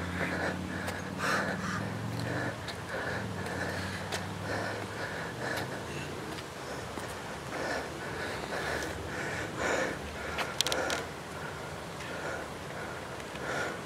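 Footsteps thud on paving as a man jogs.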